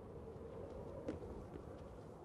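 A figure drops down and lands with a thud on stone.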